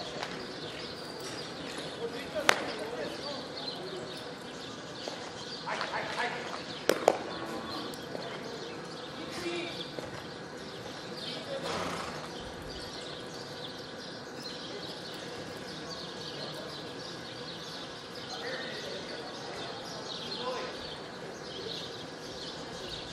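Cattle low and shuffle in a pen.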